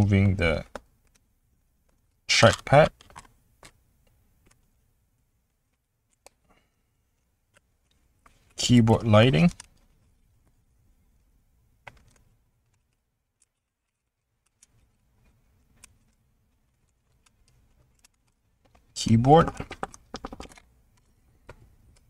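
Small plastic connectors click and tick softly as they are handled.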